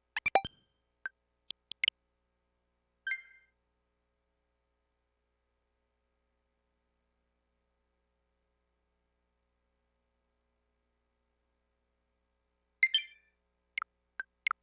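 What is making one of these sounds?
Short electronic menu chimes and clicks sound.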